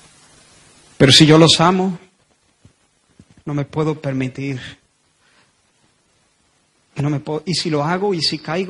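A man speaks with animation into a microphone, in short phrases with pauses.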